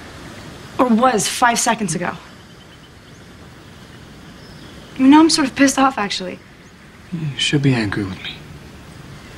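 A young woman speaks quietly and hesitantly, close by.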